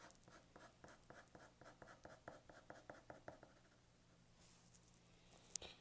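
A pencil scratches quickly across paper in short strokes.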